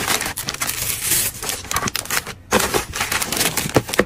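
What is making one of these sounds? Thin paper rustles as it is handled.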